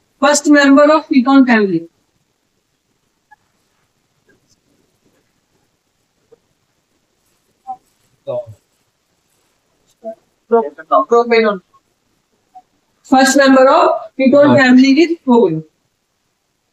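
A man speaks clearly into a close microphone, explaining in a calm teaching voice.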